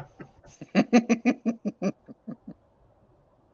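An elderly man laughs heartily over an online call.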